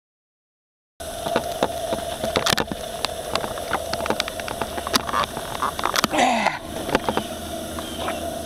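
Water splashes and laps against a boat hull.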